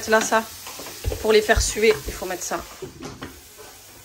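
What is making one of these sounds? A glass lid clatters onto a frying pan.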